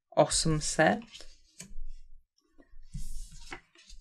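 Stiff paper cards slide and tap on a table.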